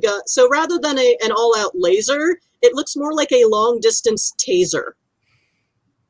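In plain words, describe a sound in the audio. A woman speaks with animation over an online call through a headset microphone.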